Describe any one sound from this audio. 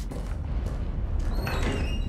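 Footsteps shuffle slowly across a hard floor.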